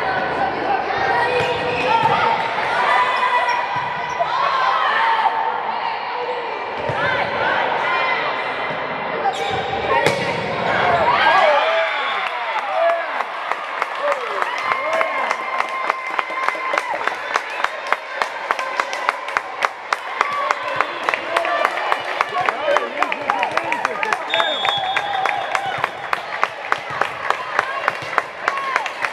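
Girls shout and call out to each other in a large echoing hall.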